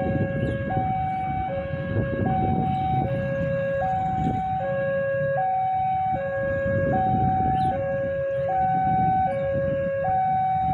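A railway crossing signal rings with a steady two-tone alternating chime.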